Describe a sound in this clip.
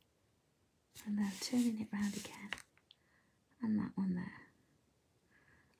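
A felt-tip marker scratches softly across paper.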